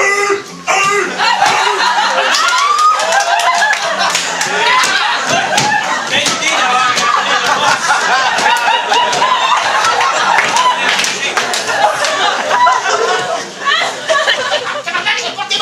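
An audience laughs and cheers loudly in a hall.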